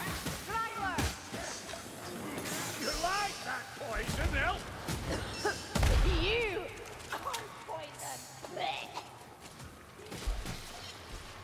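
A gun fires with loud bangs.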